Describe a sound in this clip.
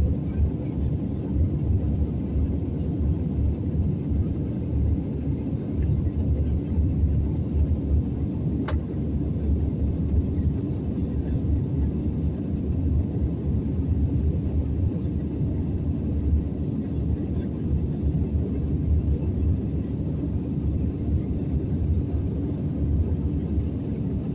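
A jet airliner's engines and airflow roar low and steady, heard from inside the cabin in flight.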